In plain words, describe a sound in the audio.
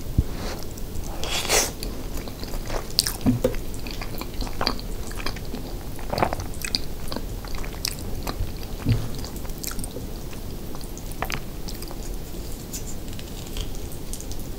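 A young woman chews food wetly close to a microphone.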